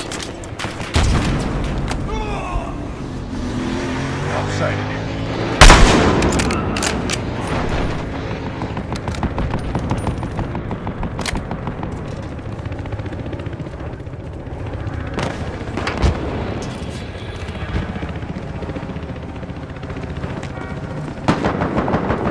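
A rifle fires loud, sharp shots now and then.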